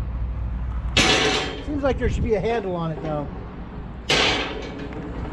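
A metal grill grate clanks.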